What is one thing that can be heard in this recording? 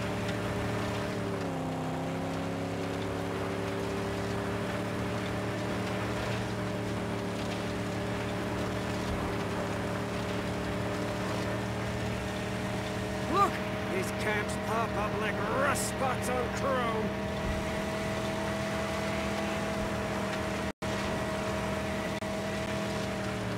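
A car engine drones steadily.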